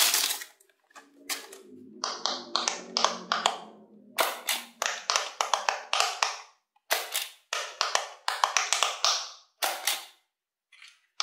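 Buttons on a plastic toy click as fingers press them.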